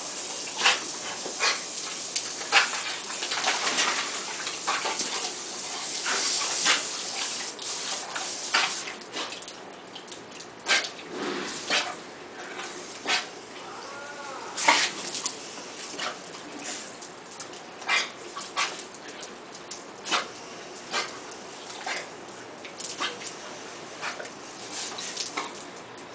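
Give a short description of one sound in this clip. Water hisses as it sprays from a garden hose.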